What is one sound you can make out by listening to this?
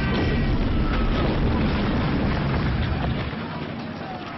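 A huge explosion booms and roars close by.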